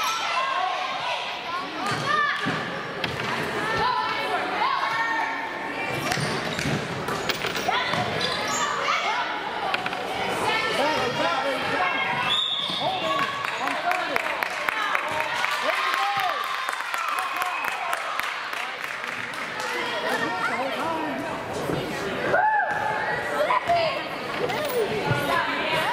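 A crowd of spectators talks and cheers in a large echoing hall.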